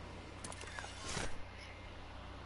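An umbrella whooshes open.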